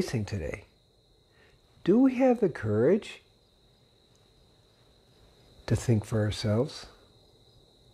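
An elderly man speaks calmly and closely into a microphone, in short phrases.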